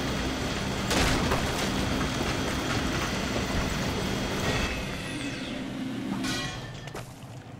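A fiery blast bursts and then roars and crackles steadily before dying away.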